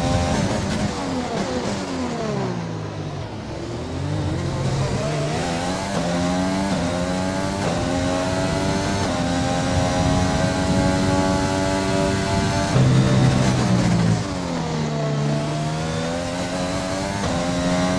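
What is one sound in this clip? A racing car engine screams, its pitch dropping when braking and climbing through the gears.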